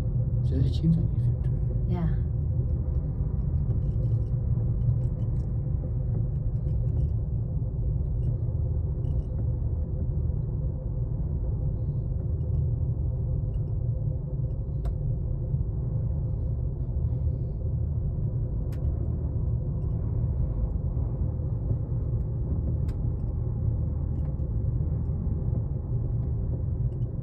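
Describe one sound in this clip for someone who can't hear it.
A cable car hums and rumbles steadily as it glides along its cable.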